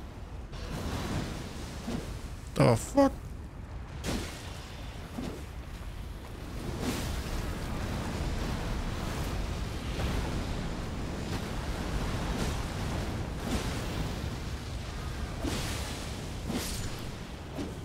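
Magic blasts and impacts burst loudly in a game.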